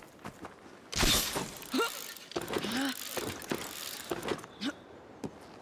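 Footsteps scrape and thud as a figure climbs a stone wall.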